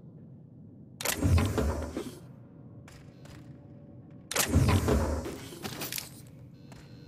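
A metal crate bangs open with a loud clatter.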